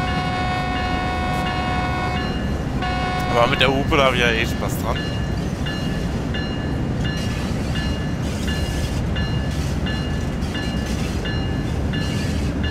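Train wheels rumble and clack over rails.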